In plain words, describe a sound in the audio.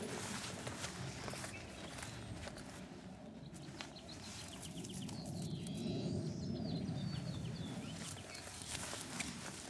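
A dog sniffs the ground close by.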